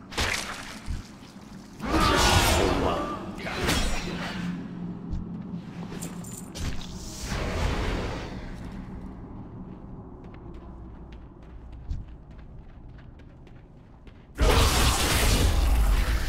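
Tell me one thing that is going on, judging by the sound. Game weapons clash and spells crackle in a fight.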